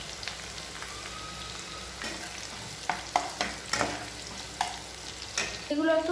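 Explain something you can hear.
A spatula scrapes and clinks against a pan.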